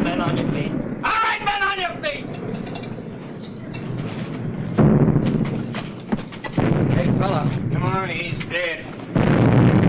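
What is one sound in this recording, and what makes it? A man speaks tensely nearby.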